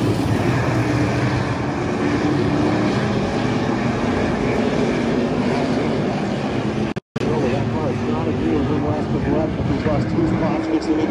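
Many race car engines roar loudly outdoors.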